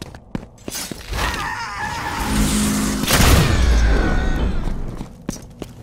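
Flaming blades whoosh and roar through the air.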